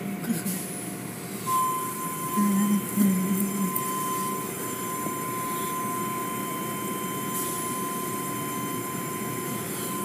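Water sprays and splashes steadily onto a vehicle.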